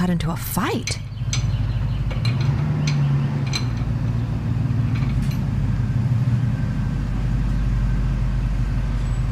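A car engine runs with a steady low rumble.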